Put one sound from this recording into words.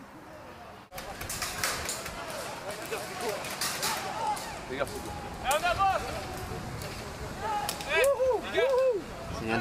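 A toy gun fires rapid sharp clicks nearby.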